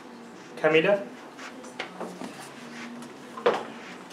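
Paper rustles as sheets are handed over.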